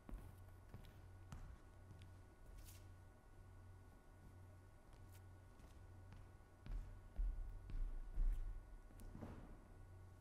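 Footsteps thud on a hollow stage.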